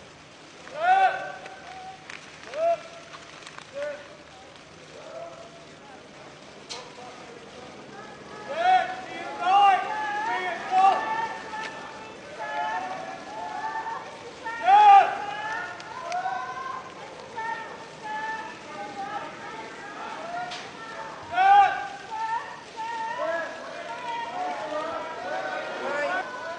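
A man speaks calmly, heard through a microphone.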